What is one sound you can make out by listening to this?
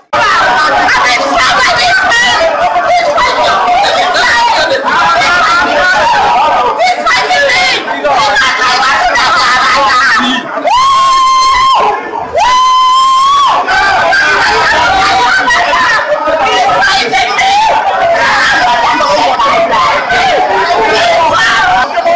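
A woman shouts loudly and excitedly close by.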